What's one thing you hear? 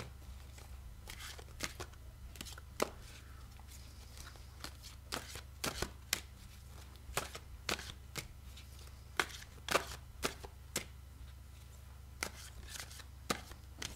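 Cards are shuffled and tapped together in short, sharp bursts.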